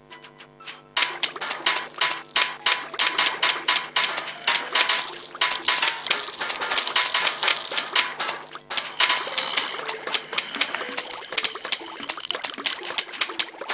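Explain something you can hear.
Rapid popping shots from a video game fire in quick bursts.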